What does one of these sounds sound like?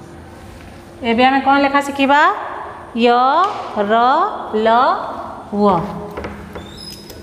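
A woman speaks clearly and slowly, as if teaching, close to a microphone.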